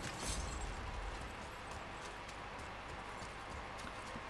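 Heavy footsteps crunch slowly on stone.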